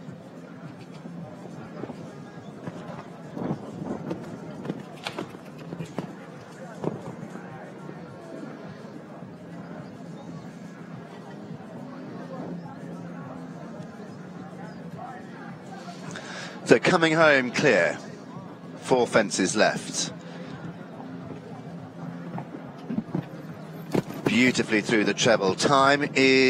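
A horse's hooves thud on a sand arena.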